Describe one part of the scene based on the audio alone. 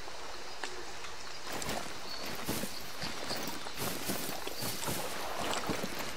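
Footsteps crunch on gravel at a steady walking pace.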